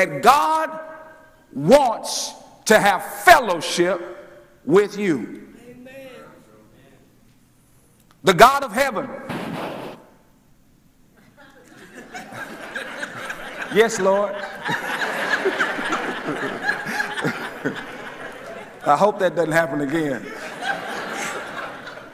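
A man preaches with animation through a microphone in an echoing hall.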